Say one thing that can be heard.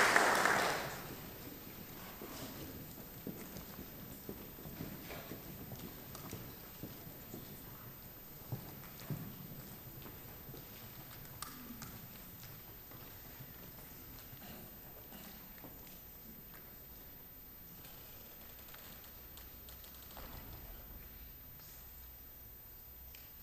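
An audience murmurs and shuffles quietly in a large hall.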